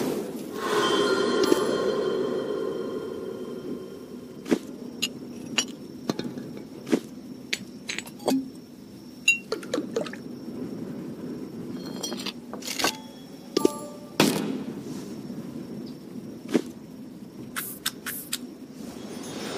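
Short game sound effects click and chime.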